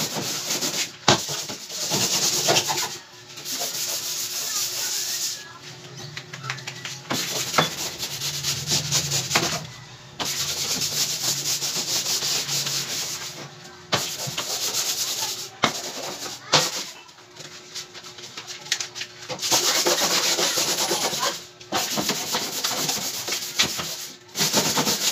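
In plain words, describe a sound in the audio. Hands knock and bump against a plywood cabinet.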